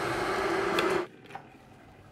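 A kettle switch clicks off.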